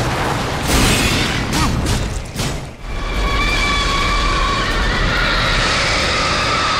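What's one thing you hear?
A huge metal creature screeches.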